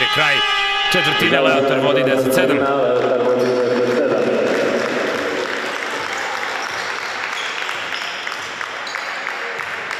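Sneakers squeak on a court in an echoing hall.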